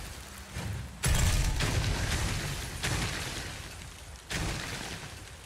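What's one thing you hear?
Ice crystals crack and shatter with loud bursts.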